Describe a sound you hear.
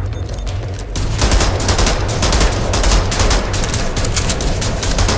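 Metal clicks and clatters as a gun is handled.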